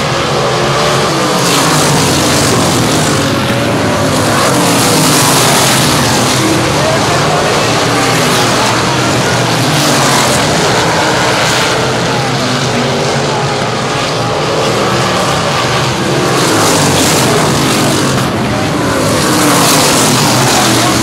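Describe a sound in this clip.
Several race car engines roar loudly and rev up and down as the cars speed past.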